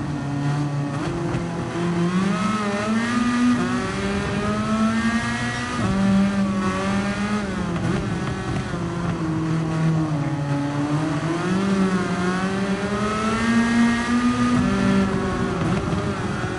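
A racing car engine revs high and shifts through gears, rising and falling in pitch.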